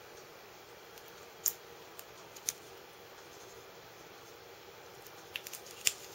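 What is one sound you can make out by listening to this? A metal dental tool clicks and scrapes softly against a hard model.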